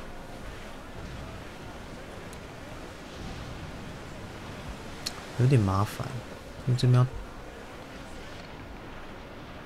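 Waves wash and splash against a sailing ship's hull.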